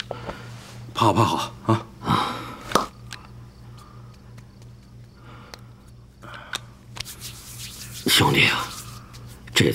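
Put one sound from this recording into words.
A middle-aged man speaks tearfully in a choked voice, close by.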